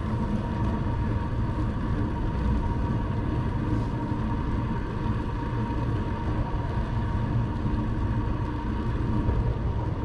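Wind rushes and buffets steadily against a moving bicycle.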